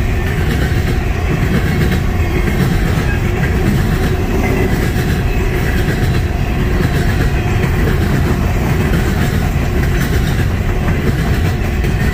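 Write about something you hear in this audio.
A long freight train rumbles past close by, its wheels clattering and squealing on the rails.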